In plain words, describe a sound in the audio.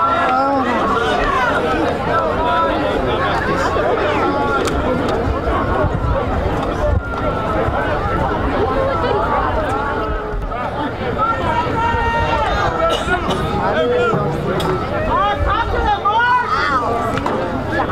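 Many boys talk and shout outdoors, close by.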